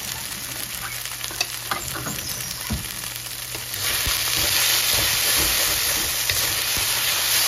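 Shrimp sizzle in hot oil in a pan.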